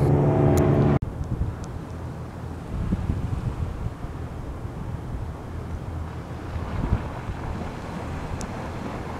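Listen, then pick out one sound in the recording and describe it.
Wind rumbles across the open water.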